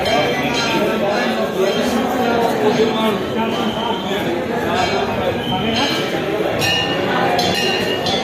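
A crowd of men and women chatter and call out nearby.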